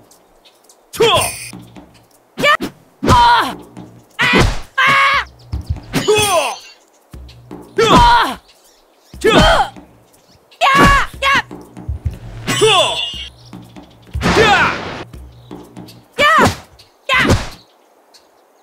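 Kicks land on a body with sharp thuds.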